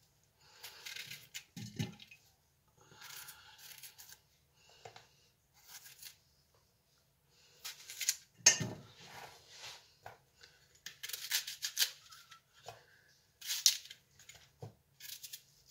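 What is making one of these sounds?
A knife slices through crisp apple.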